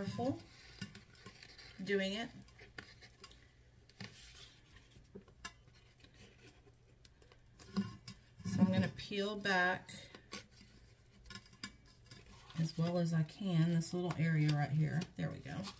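Wrapping paper crinkles and rustles as hands fold it.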